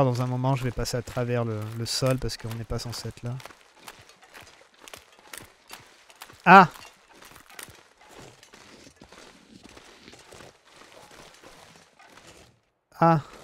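Footsteps crunch steadily on snow and ice.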